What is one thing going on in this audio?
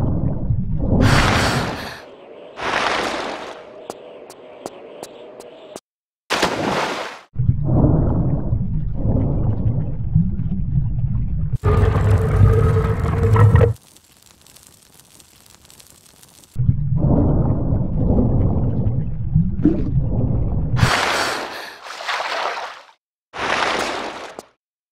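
Water splashes loudly as a swimmer breaks the surface.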